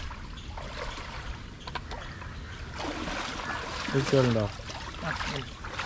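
A man wades through shallow water, splashing.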